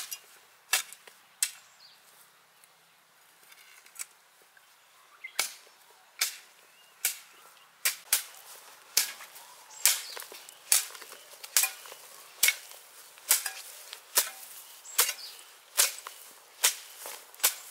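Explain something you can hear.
A hoe chops into soft soil with regular thuds.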